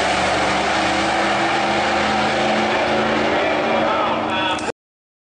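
Race car engines roar loudly and steadily.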